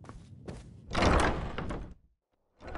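A heavy wooden door creaks open and thuds.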